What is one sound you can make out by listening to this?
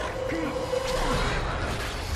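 A creature snarls and screeches.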